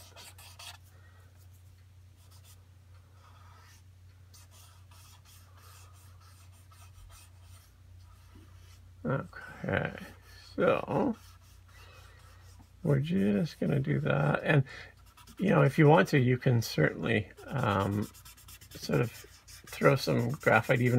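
A pencil softly scratches and shades on paper.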